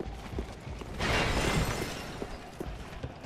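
Armour clatters as a figure rolls across the floor.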